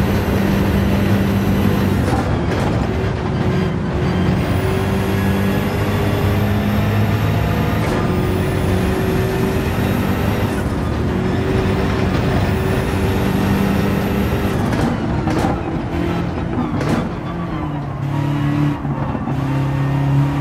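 A racing car engine roars loudly, rising in pitch through each gear and dropping with each shift.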